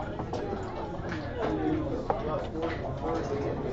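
A game piece clicks against a board.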